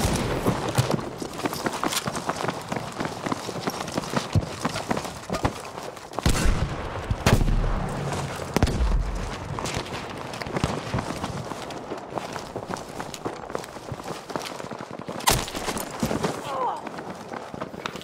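Gunshots crack and bang in rapid bursts outdoors.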